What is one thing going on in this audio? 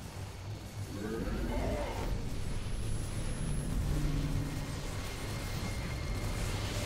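Laser guns zap and blasts boom in a battle.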